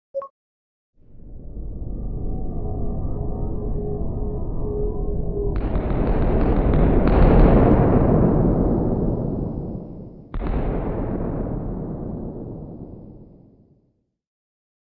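A deep, swirling roar rumbles and slowly fades.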